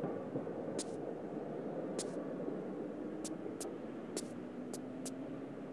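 Footsteps tap on roof tiles.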